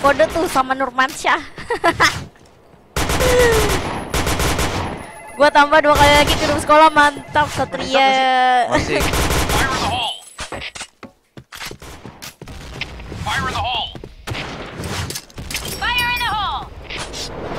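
A young woman talks and laughs with animation close to a headset microphone.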